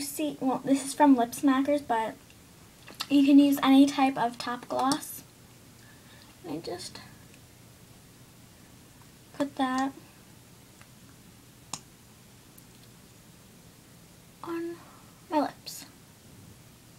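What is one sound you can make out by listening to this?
A young girl talks close by, with animation and in short bursts.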